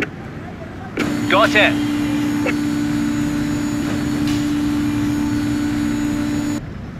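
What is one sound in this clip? A fire engine's pump drones steadily.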